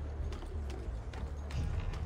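Hands and feet scrape and knock while climbing a wooden ladder.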